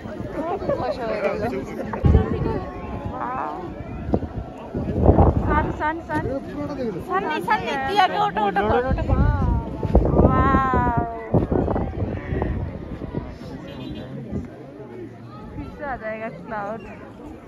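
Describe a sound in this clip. A crowd of people talk and exclaim excitedly close by, outdoors.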